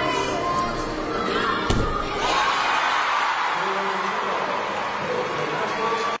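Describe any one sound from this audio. A crowd cheers and applauds loudly in a large echoing hall.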